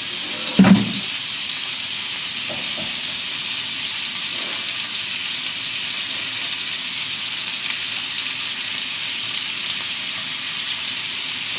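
Food sizzles steadily in a frying pan.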